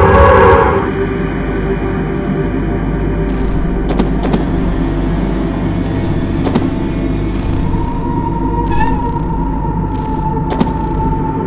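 A low electronic game drone hums steadily.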